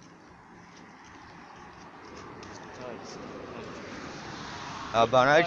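Traffic hums steadily nearby.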